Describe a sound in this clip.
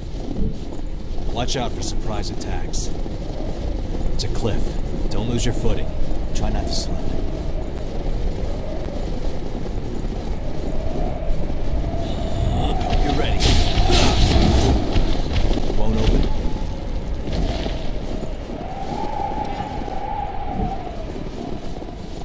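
Wind howls steadily.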